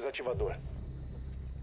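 A young man talks into a microphone close by.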